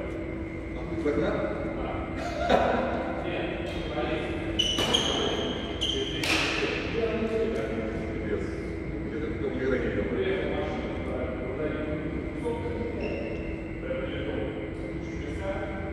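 A racket hits a shuttlecock with sharp clicks.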